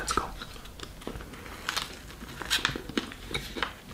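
A man bites into a wrap close up.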